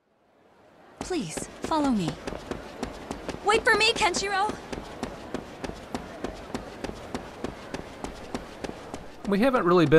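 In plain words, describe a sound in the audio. Footsteps run quickly and steadily on hard stone.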